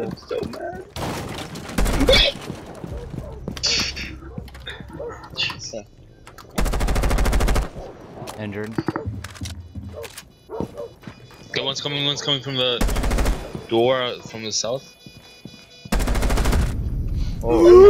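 An automatic rifle fires in loud, rapid bursts.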